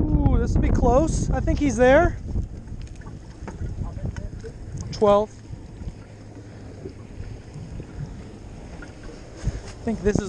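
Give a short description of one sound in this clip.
Waves slap against a small boat's hull.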